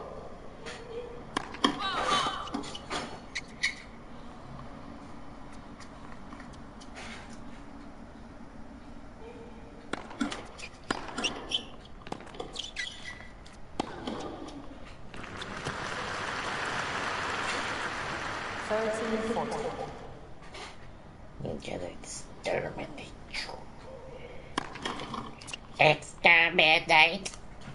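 A tennis ball is struck by rackets with sharp pops.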